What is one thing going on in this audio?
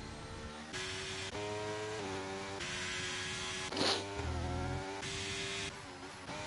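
A racing car engine screams at high revs, its pitch jumping as gears shift.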